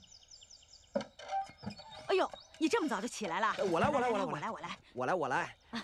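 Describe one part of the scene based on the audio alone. A middle-aged woman talks with animation.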